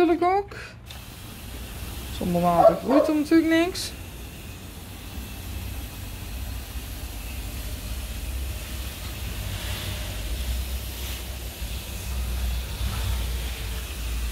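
A hand sprayer hisses softly as it mists water onto soil.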